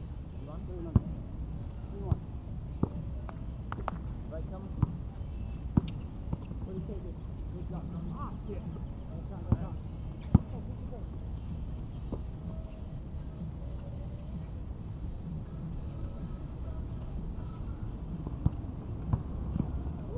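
A basketball bounces sharply on an outdoor court.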